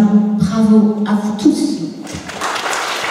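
A children's choir sings together in a large hall.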